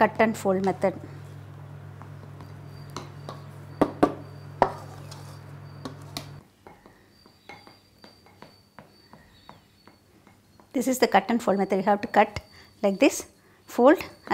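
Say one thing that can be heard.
A spatula scrapes and taps against a glass bowl while mixing batter.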